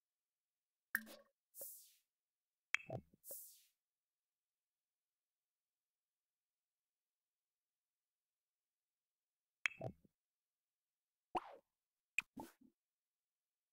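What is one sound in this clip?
Short game interface clicks and chimes sound now and then.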